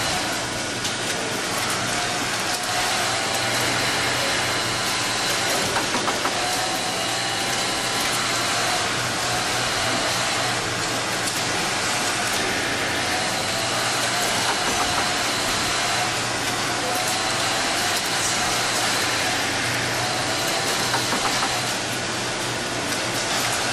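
A sewing machine hums and whirs steadily.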